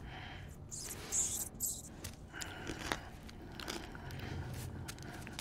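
A man bites and chews something crunchy.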